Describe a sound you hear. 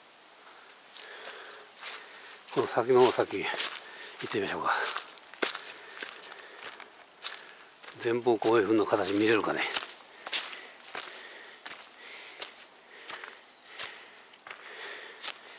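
Footsteps crunch through dry leaves on a dirt path.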